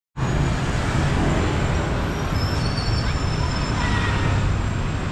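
Motorbikes and traffic rumble steadily along a city street outdoors.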